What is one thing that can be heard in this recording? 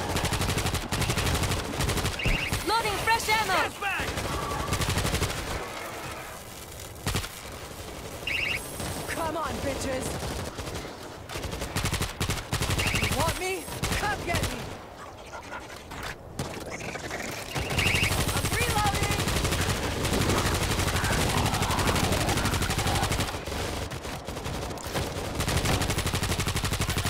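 Rifles fire in rapid bursts.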